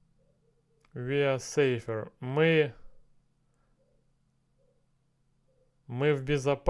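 A man speaks clearly and slowly into a close microphone.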